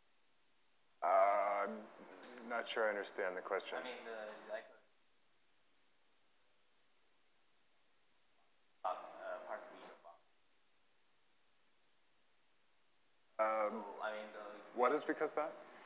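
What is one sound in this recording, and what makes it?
A man speaks calmly through a microphone in a large hall, in short bursts with pauses.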